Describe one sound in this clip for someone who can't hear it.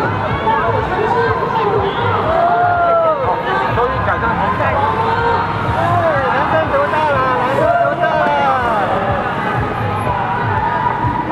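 A crowd chatters and calls out around the listener.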